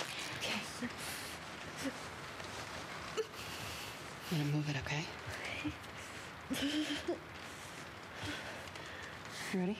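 A young woman whimpers and groans in pain.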